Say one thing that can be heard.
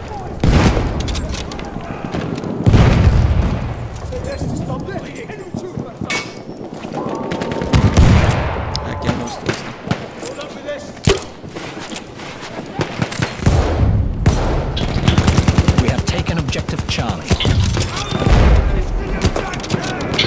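Rifle shots boom loudly, each followed by a rolling echo.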